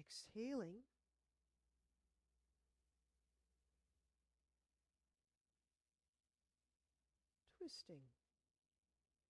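A young woman speaks calmly and briefly, close by.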